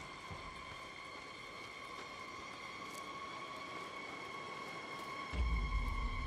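Footsteps crunch on dirt and grass.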